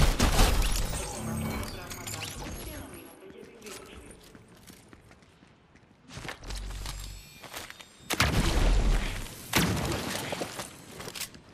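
A shimmering energy blast rings out.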